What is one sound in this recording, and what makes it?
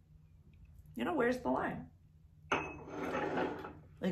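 A cup clinks on a saucer.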